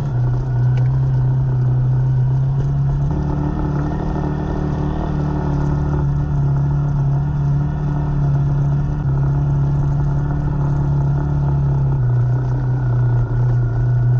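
Tyres rumble on a rough concrete road.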